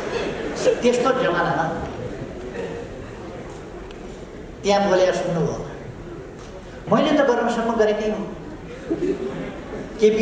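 An elderly man speaks with animation into microphones.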